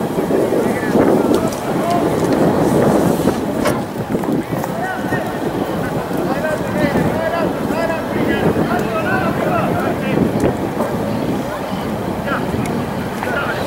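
Spectators cheer and chatter from the sidelines.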